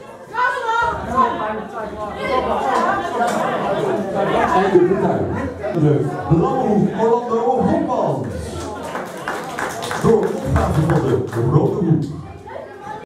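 A man announces loudly over a loudspeaker in an echoing hall.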